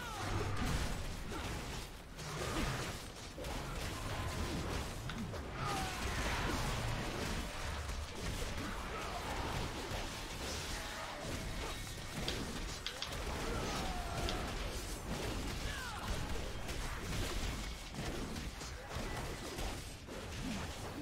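Fantasy combat sounds of a game ring out in a dense, busy clamour.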